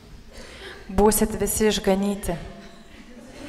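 A young woman sings into a microphone in an echoing room.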